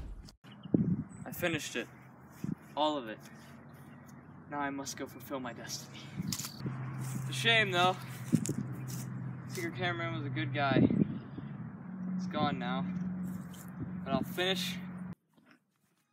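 A young man talks casually outdoors, close by.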